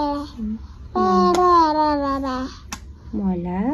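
A little girl talks in a high voice up close.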